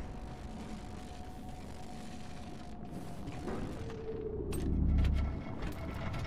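Electric bolts crackle and buzz.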